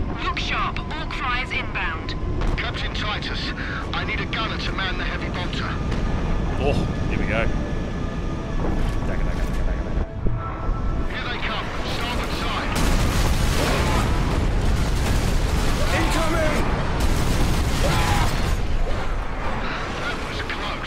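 Heavy guns fire in rapid bursts.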